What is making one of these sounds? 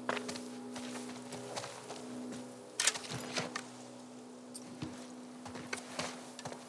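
Tall grass rustles and swishes as someone creeps through it.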